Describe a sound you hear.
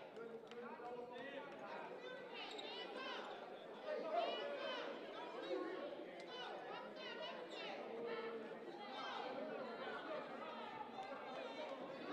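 A small crowd murmurs in a large echoing gym.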